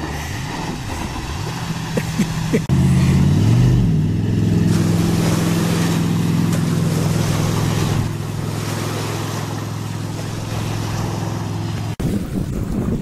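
A motorboat engine roars loudly close by.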